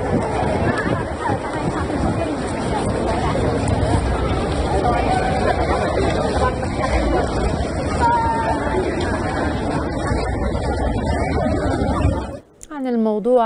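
A crowd of people chatters and shouts loudly outdoors.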